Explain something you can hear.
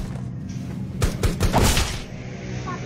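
A rifle fires a few sharp shots.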